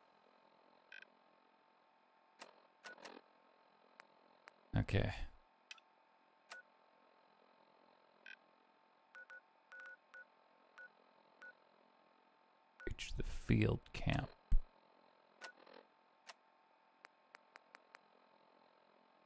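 Soft electronic clicks and beeps sound as a dial is turned.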